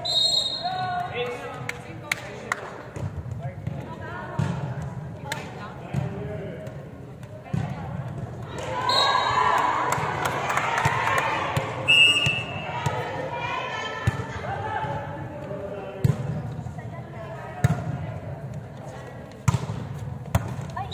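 Young women call out and shout to each other in a large echoing hall.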